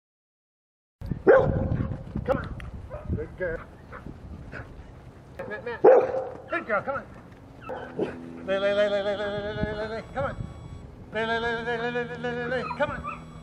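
A man calls out to a dog outdoors.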